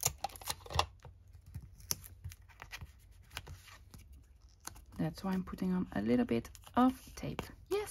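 Paper rustles and crackles as hands handle it.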